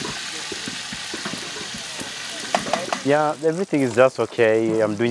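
A metal lid clinks against a cooking pot.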